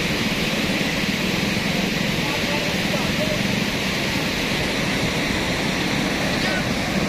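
A muddy flood torrent rushes and roars loudly.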